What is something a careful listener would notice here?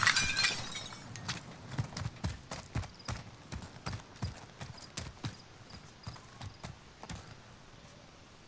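Footsteps crunch quickly over gravel and dirt.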